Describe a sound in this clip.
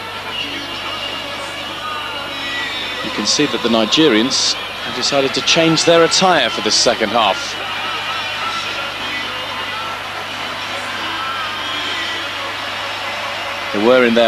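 A large stadium crowd murmurs and roars steadily in the open air.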